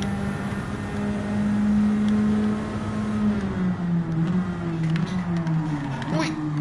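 A race car engine drones steadily at high speed, its pitch dipping slightly as it slows into a corner.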